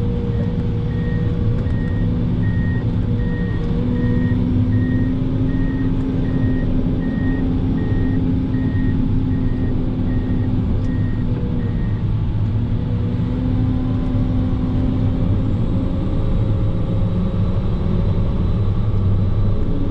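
A heavy diesel engine rumbles steadily up close, heard from inside the cab.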